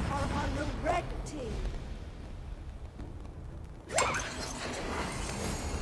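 Fantasy game spell effects whoosh and burst during a fight.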